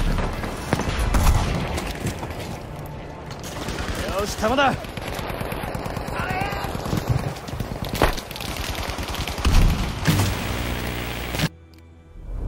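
A heavy machine gun fires in bursts.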